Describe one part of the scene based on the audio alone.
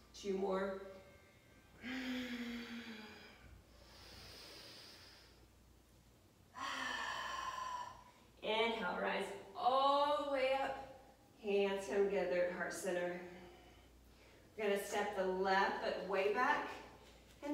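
A woman gives calm instructions close by.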